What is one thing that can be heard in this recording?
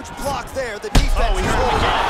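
A kick lands on a body with a heavy thud.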